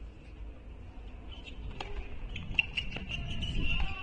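A tennis ball bounces a few times on a hard court.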